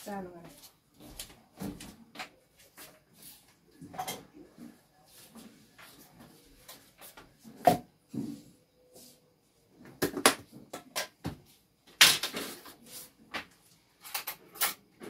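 Plastic containers and jars clatter and knock as a woman handles them.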